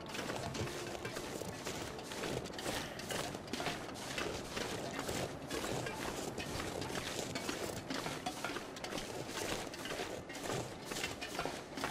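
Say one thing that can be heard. A steam train rumbles steadily along the rails.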